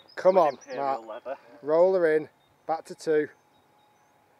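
A man speaks with animation, close by, outdoors.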